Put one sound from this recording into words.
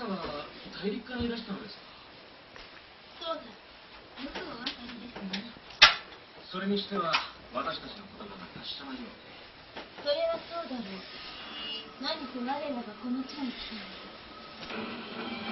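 A teenage boy talks with animation close by.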